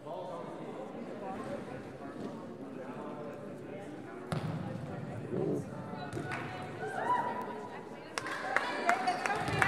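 Young women call out to each other in an echoing gym.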